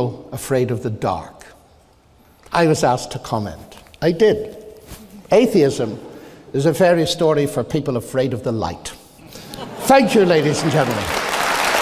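An elderly man speaks with warmth and humour through a microphone in a large echoing hall.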